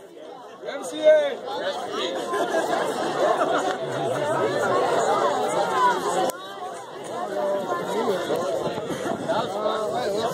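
A rock band plays loudly outdoors with electric guitars and drums.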